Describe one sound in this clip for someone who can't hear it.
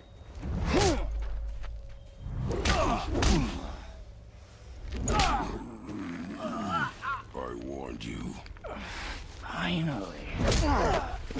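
Heavy punches thud hard against flesh.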